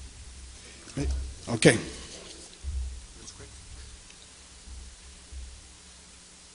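An older man speaks briefly into a microphone.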